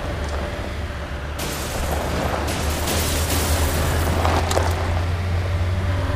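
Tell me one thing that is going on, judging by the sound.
Vehicles crash into each other with a metallic bang.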